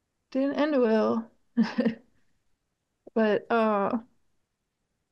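A middle-aged woman talks over an online call.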